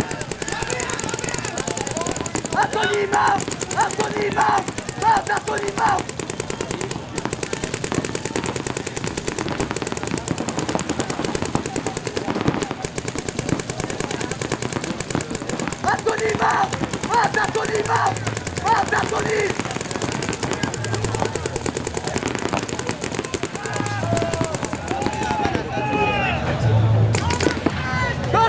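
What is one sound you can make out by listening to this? Paintball guns pop in rapid bursts outdoors.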